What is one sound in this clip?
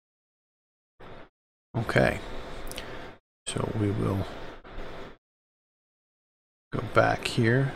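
A man talks calmly into a close microphone, in short bursts.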